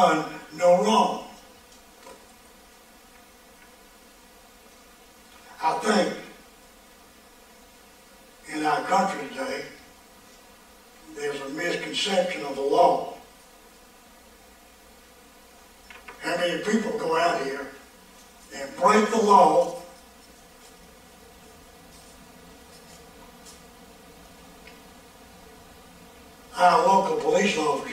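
An elderly man preaches through a microphone in bursts with long pauses, sometimes raising his voice forcefully.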